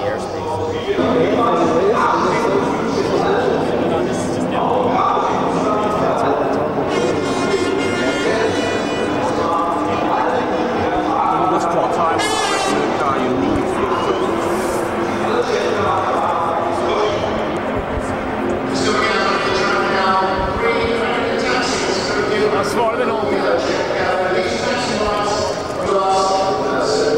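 A crowd chatters around.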